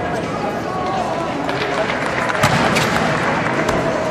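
A gymnast's feet pound down a runway.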